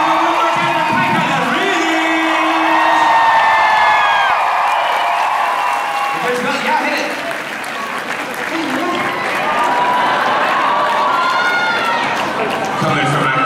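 A man speaks with animation through a microphone over loudspeakers in a large hall.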